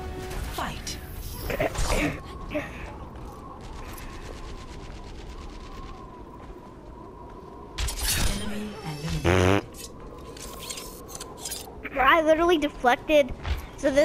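Metal throwing stars whoosh and clatter in short, sharp bursts.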